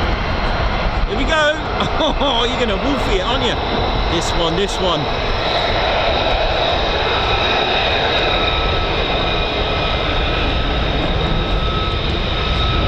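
A jet roars loudly overhead as it flies past.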